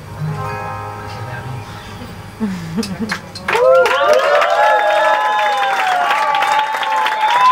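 A live band plays music.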